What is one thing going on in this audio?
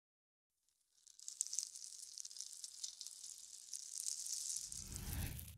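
Many small blocks clatter and patter as they tumble into a heap.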